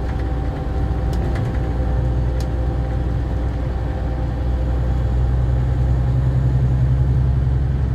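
A bus engine hums low and steady while driving.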